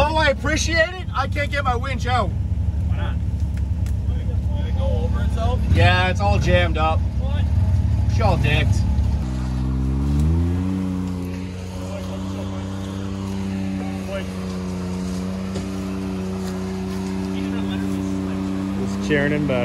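An off-road vehicle's engine rumbles, then revs up and holds a steady drone.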